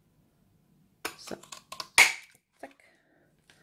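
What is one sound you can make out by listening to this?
A paper punch clicks and snaps shut.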